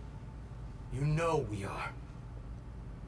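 A man speaks calmly and briefly.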